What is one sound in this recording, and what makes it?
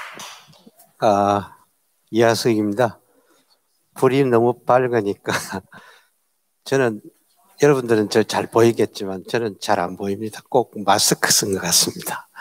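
An elderly man speaks calmly into a microphone, heard over loudspeakers in a hall.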